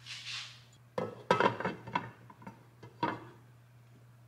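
A glass lid clinks onto a metal pan.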